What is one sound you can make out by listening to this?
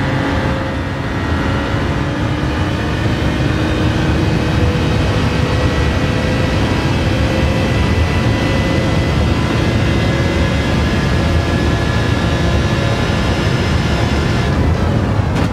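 A racing car engine roars steadily, rising in pitch as it speeds up.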